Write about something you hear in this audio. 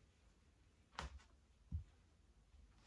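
A metal hand drum knocks with a dull thud as it is handled.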